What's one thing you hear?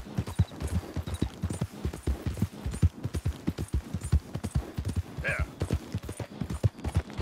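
A horse gallops with quick, heavy hoofbeats on the ground.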